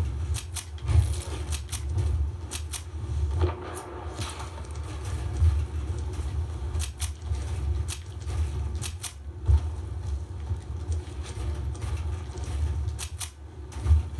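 Sharp clicks of building pieces snapping into place come in quick pairs.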